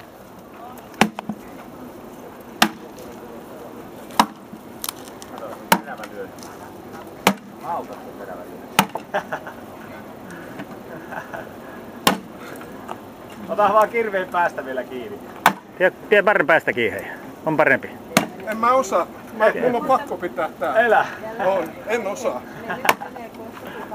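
An axe splits logs with sharp, sudden cracks.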